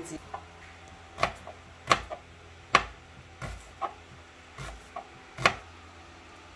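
A knife chops onions on a cutting board.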